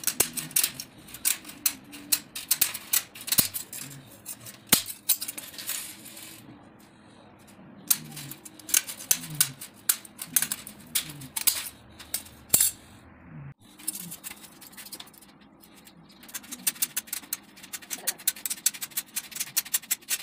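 Scissors snip through wire mesh with sharp metallic clicks.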